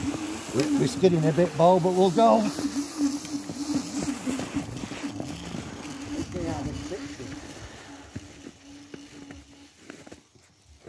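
An electric motor whines steadily and fades as a snow scooter rides away.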